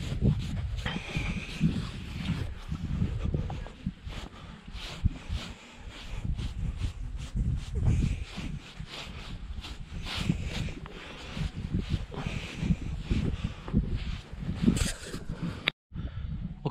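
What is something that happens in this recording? A brush scrubs against a horse's coat in quick strokes.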